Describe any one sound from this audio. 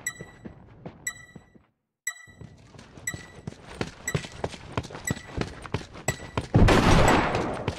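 Footsteps run quickly across a hard floor.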